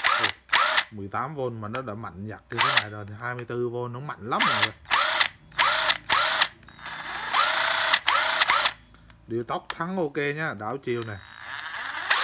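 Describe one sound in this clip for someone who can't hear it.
A power tool motor speeds up and slows down with a rising and falling whine.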